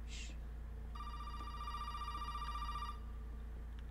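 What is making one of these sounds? A telephone rings.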